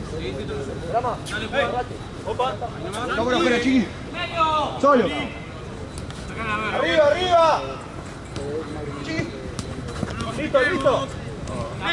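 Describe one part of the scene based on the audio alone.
Young men shout and call out loudly outdoors.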